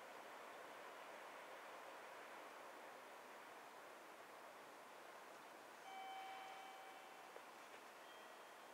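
A train hums faintly as it approaches from far off.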